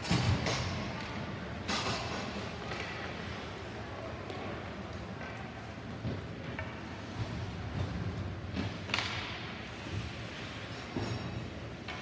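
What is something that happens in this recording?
Hockey sticks clack against the puck and the ice.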